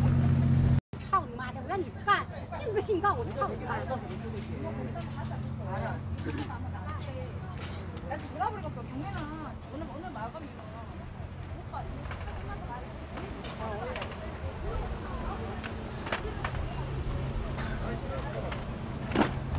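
Several women chatter and call out to one another outdoors.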